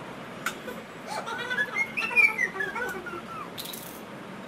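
A young girl laughs loudly.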